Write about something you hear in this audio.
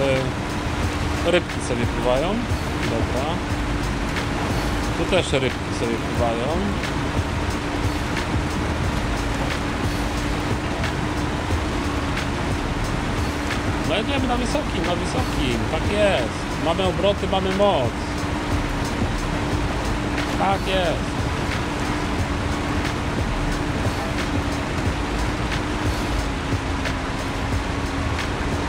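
A truck engine hums steadily as the truck drives.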